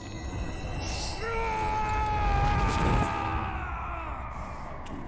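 A magical burst of light whooshes and fades.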